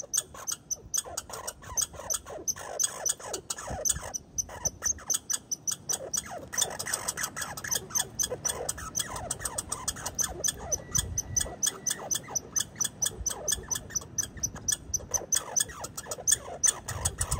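A squirrel crunches seeds with rapid, crisp clicks close by.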